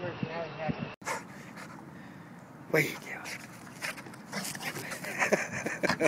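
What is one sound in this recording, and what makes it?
A dog digs and scratches at the grass.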